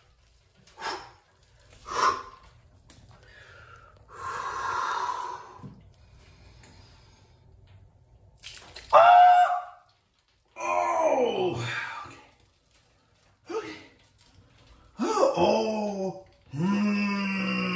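Water splashes as feet move in a shallow bath.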